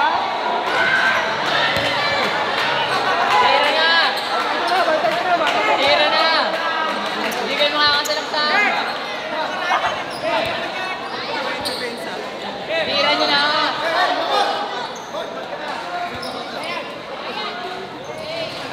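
A large crowd cheers and chatters in an echoing gym.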